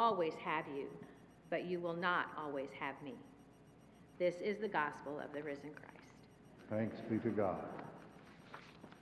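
A middle-aged woman reads aloud calmly through a microphone in an echoing hall.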